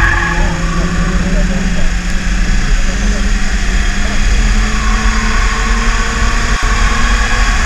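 A car engine drones steadily from inside the cabin, rising and falling in pitch.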